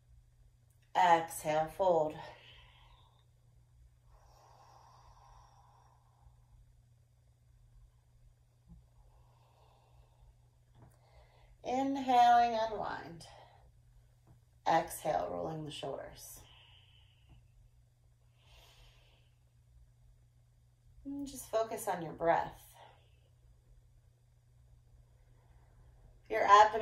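A woman speaks calmly and close by, in short phrases with long pauses between them.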